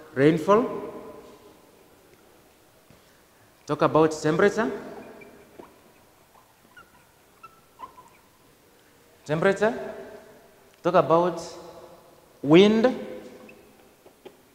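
A man speaks in short, loud bursts, with an echo after each.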